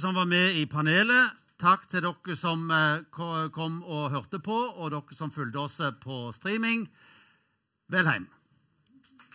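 An older man speaks into a microphone with animation.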